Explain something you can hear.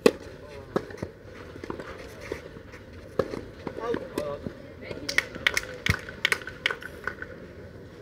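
Tennis balls are struck back and forth with sharp pops outdoors.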